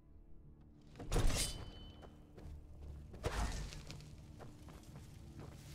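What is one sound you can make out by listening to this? A magic spell crackles and whooshes in bursts.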